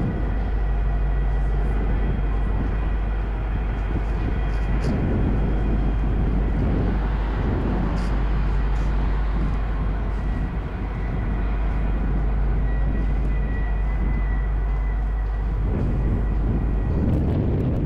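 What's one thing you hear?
Diesel locomotives rumble and throb steadily close by.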